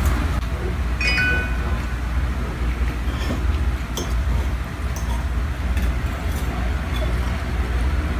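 A fork scrapes and clinks on a plate.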